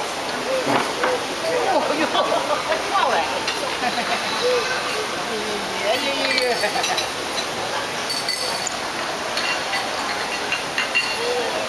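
Many people chatter around the room.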